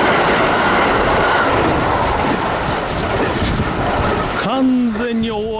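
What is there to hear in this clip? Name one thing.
A train rushes past close by with a loud roar.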